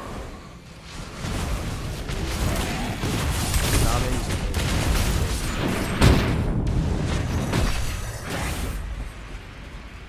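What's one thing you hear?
Game spell effects whoosh and crackle during a fight.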